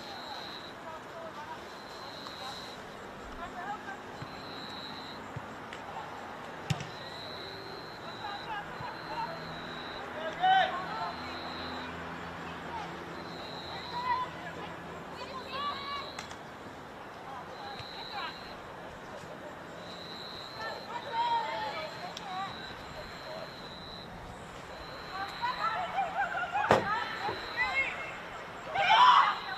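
Young women shout to each other across an open field outdoors.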